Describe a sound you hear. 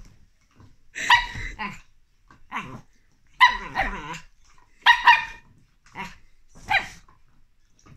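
A dog gives short, sharp yaps.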